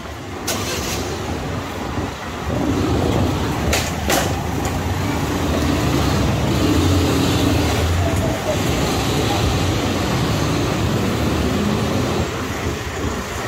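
Car engines hum as cars move slowly past.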